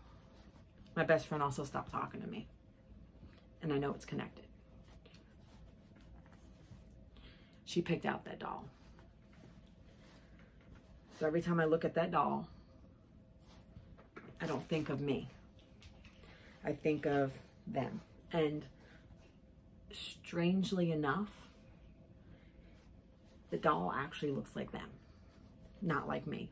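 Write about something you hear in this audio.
A woman talks calmly and closely in short bursts with pauses.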